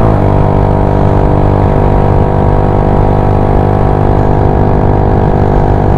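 Wind buffets loudly past the rider.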